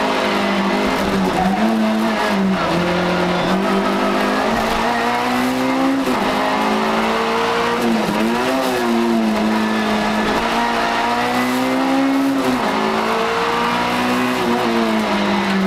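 A rally car engine roars loudly from inside the cabin, revving up and down through the gears.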